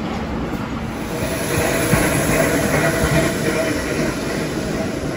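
A vintage subway train pulls into a station.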